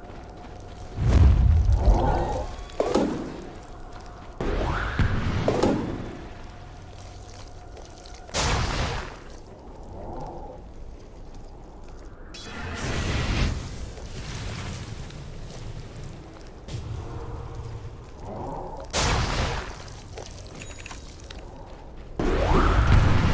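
Spell effects burst and crackle in a game fight.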